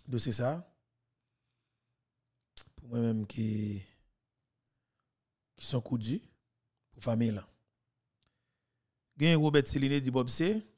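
A young man speaks close into a microphone in short, animated bursts with pauses between.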